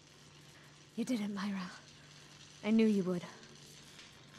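A young woman speaks calmly and quietly in short phrases.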